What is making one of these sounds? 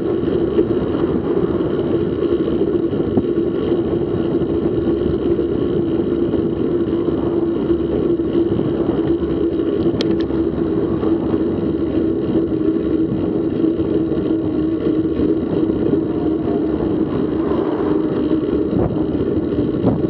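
Wind rushes steadily past a moving bicycle.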